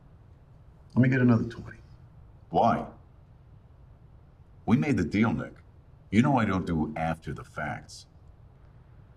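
A man speaks in a low, tense voice, close by.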